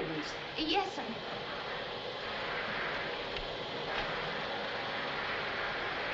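A vacuum cleaner hums steadily.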